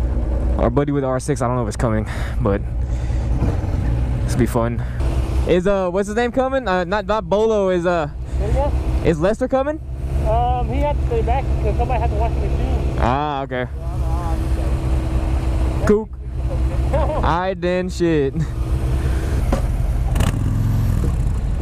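A parallel-twin cruiser motorcycle idles.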